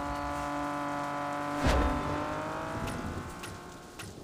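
A car engine roars at high revs, then fades away.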